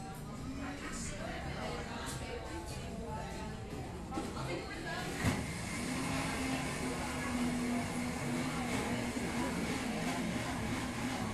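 Many people chatter in the background of a busy room.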